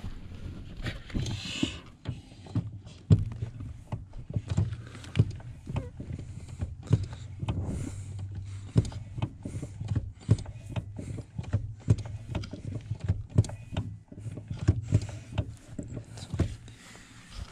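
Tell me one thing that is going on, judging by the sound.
A hand tool clicks and scrapes against metal close by.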